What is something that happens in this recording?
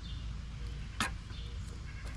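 A plastic bucket is set down on wood mulch with a thud.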